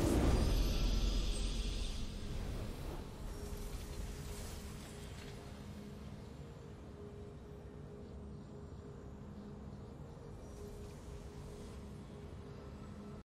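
A triumphant fanfare swells and then holds softly.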